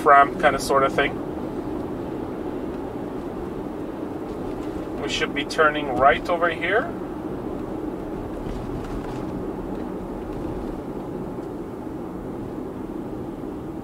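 A car hums steadily along a highway, its tyres rumbling on the road.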